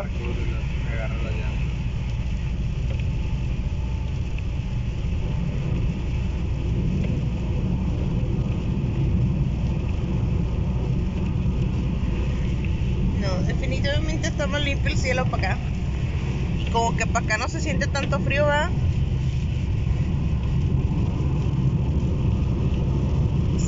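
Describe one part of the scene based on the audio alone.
Heavy rain pelts a car's windshield steadily.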